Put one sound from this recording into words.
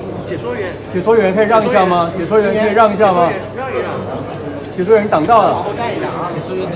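A man speaks up loudly and clearly nearby.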